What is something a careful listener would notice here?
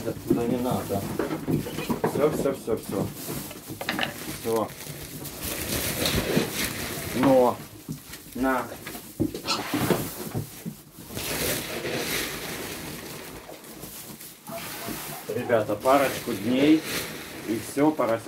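Straw rustles underfoot.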